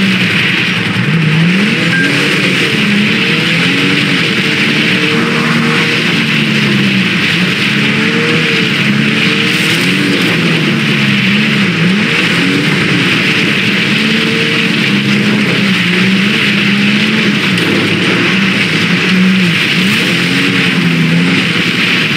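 Tyres crunch over dirt and gravel.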